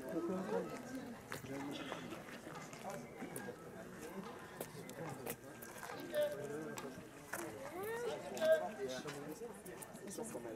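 Shoes scuff and tap on stone steps nearby.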